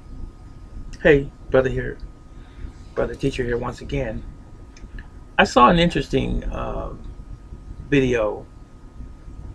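An older man speaks calmly and close by, in short phrases with pauses.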